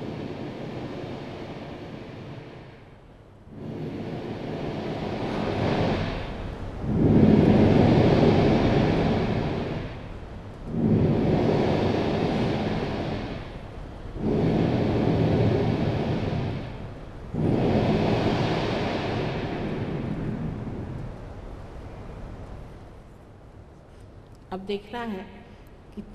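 An elderly woman speaks calmly through a microphone.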